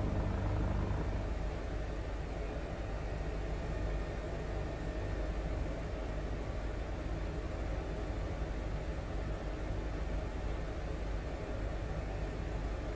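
A helicopter engine and rotor drone steadily from inside the cabin.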